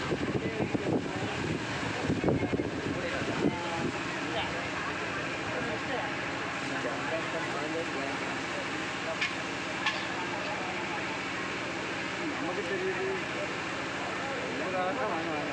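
A crowd of people chatter and call out all around, close by.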